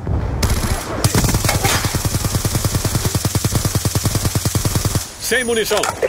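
A machine gun fires in rapid, long bursts.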